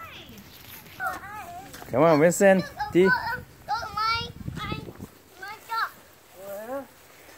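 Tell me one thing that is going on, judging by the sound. A young girl talks and squeals excitedly close by.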